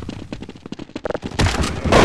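A grenade explodes with a loud bang.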